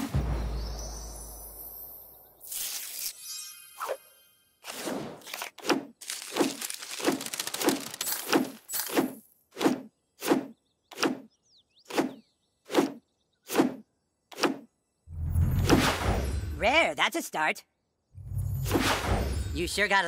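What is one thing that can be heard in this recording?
Short game sound effects whoosh and chime in quick succession.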